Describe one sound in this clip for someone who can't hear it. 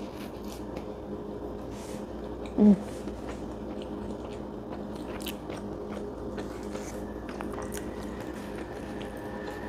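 A young woman chews food with soft smacking sounds.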